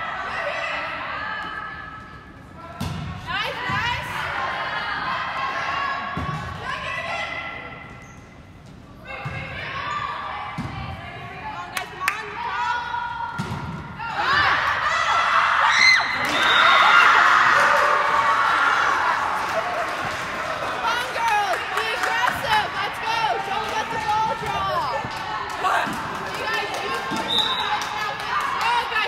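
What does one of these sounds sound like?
Young women shout and call out to each other across the court.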